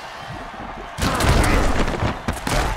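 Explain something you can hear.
Heavy bodies crash together in a tackle.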